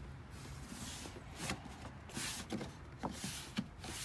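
Plastic trim clicks and rattles as fingers press on it.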